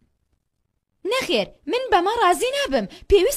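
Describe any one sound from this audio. A young girl speaks in a high, animated voice.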